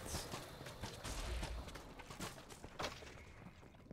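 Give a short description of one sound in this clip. Sword blows clash and thud in quick bursts.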